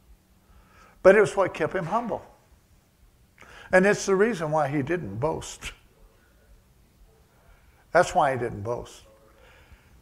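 An elderly man speaks calmly into a microphone in a slightly echoing room, with pauses between phrases.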